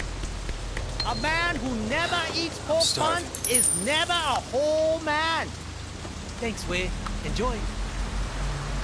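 A man speaks animatedly nearby.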